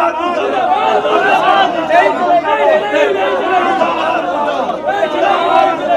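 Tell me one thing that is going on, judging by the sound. A man speaks loudly into microphones, close by.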